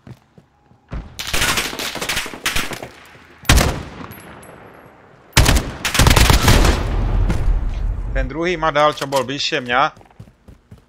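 Automatic gunfire rattles in loud bursts.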